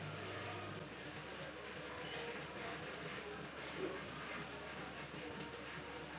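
A blanket rustles as it is pulled and folded.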